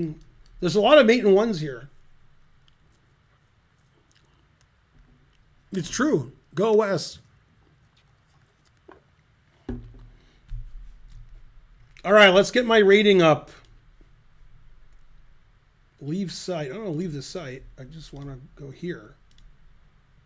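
A middle-aged man talks with animation into a close microphone, in short bursts with pauses.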